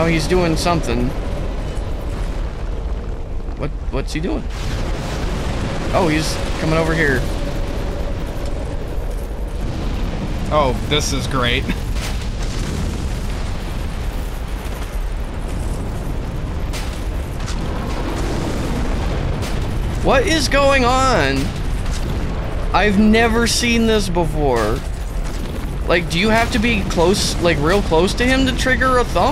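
A man talks with animation through a headset microphone.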